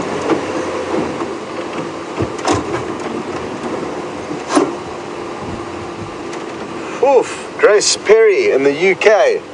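A vehicle engine rumbles steadily while driving over a bumpy dirt track.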